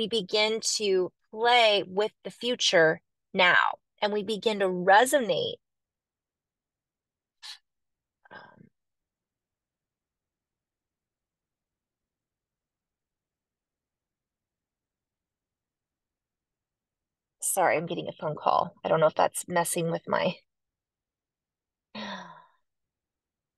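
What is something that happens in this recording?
A woman speaks calmly and closely through a microphone, with pauses.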